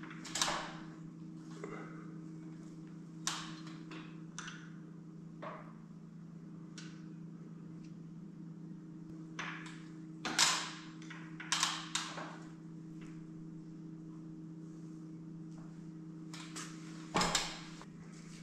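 Metal tools tap and clink against a machine.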